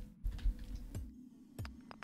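A pickaxe strikes rock.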